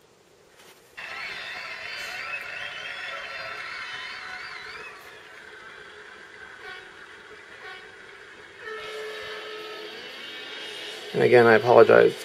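A racing car engine hums through a small tablet speaker.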